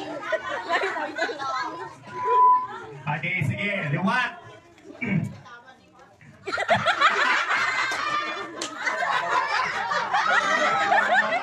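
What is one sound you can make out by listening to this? A crowd of men and women chatter and call out nearby.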